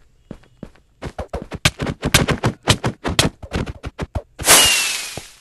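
Quick punches land in a game fight.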